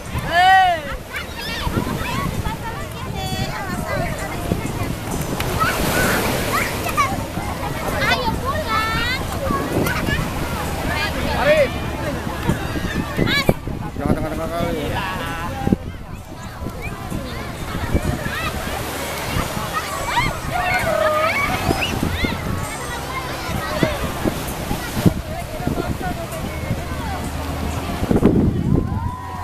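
Waves wash and break onto the shore.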